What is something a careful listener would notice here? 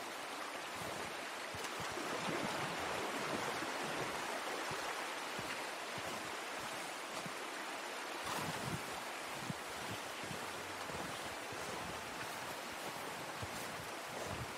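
A stream rushes and gurgles nearby.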